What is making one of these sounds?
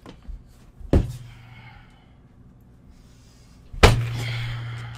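A man bumps against a microphone with loud thuds.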